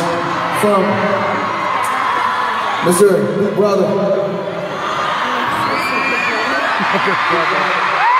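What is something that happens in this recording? Young men sing through loudspeakers.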